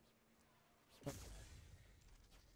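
A fiery beam roars.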